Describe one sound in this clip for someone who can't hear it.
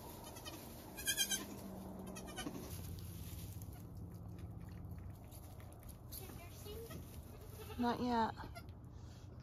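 A young goat kid bleats in a high voice.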